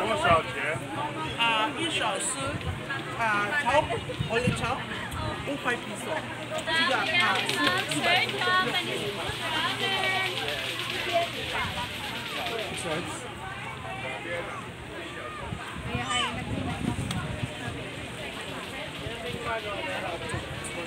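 Several men and children talk and call out nearby in a lively crowd.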